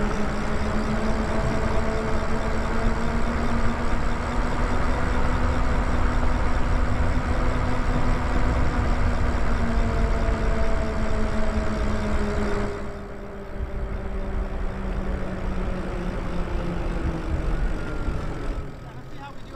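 An electric bike motor whines steadily, rising and falling in pitch.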